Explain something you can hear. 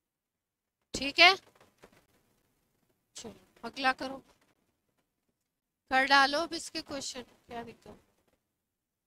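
A woman speaks in short bursts, close to a clip-on microphone, in a lecturing tone.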